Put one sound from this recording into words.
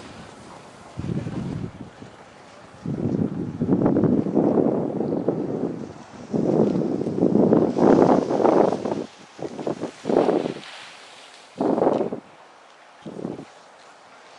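A snowboard scrapes and hisses over packed snow in bursts.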